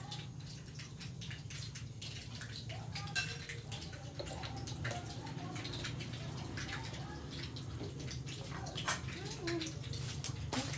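Utensils clink against dishes.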